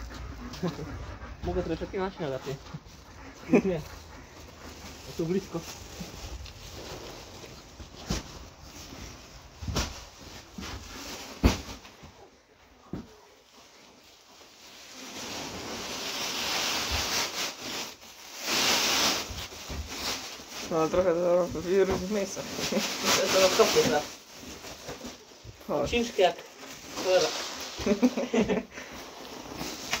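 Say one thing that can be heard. Boots shuffle and crunch on straw.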